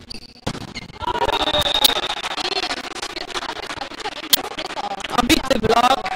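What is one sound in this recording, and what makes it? A crowd of young men cheers and shouts in a large echoing hall.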